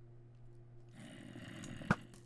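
A bow creaks as its string is drawn back.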